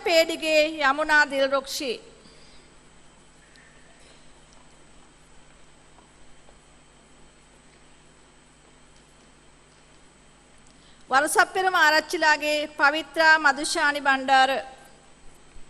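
A woman reads out names over a loudspeaker in a large echoing hall.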